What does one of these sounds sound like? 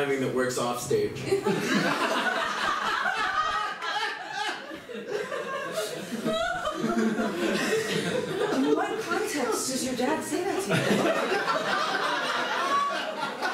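A young woman talks back to a man.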